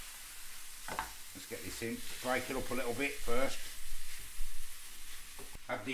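A wooden spoon scrapes and presses in a frying pan.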